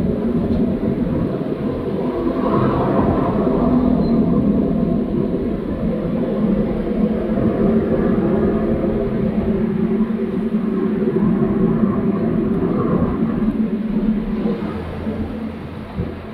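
Traffic rumbles past on the road.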